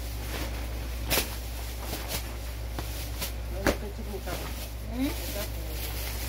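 Fabric of a long robe rustles as a woman turns.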